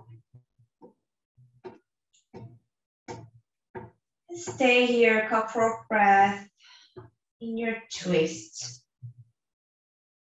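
A woman speaks calmly and softly nearby.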